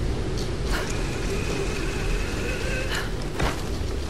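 A pulley whirs along a rope.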